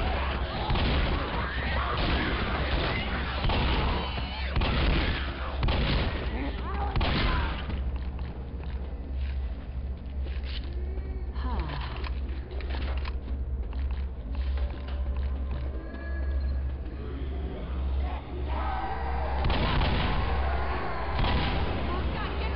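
A shotgun fires in loud, quick blasts.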